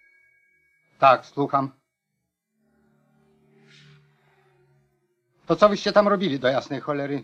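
A middle-aged man speaks firmly and close by.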